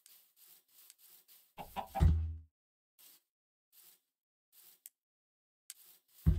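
Footsteps fall softly and steadily on grass.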